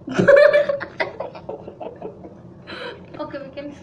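Two girls laugh together.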